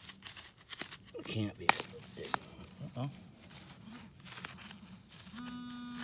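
A tool scrapes and rustles through damp soil and grass.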